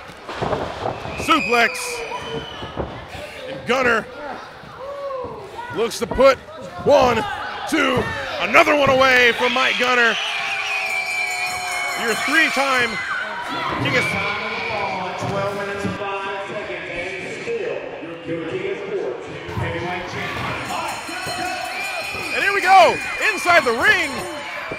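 Men in the crowd yell loudly nearby.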